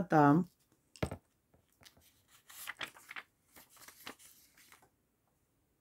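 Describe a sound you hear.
A deck of cards rustles and flaps as it is shuffled by hand.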